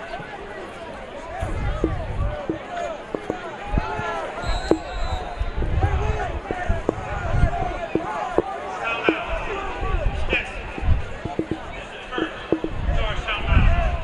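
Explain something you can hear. A crowd murmurs in distant stands.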